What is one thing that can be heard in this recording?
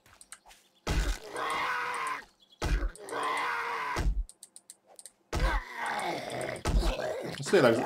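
A fist thumps repeatedly against a tree trunk.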